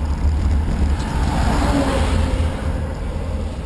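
A school bus roars past.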